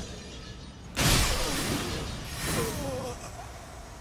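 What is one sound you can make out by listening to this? A loud magical blast bursts and crackles.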